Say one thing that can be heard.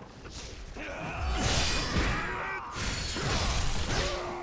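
Blades clash and slash in a fierce fight.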